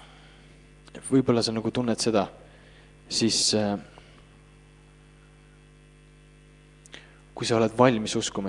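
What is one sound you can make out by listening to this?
A man speaks slowly into a microphone, heard through loudspeakers in a reverberant room.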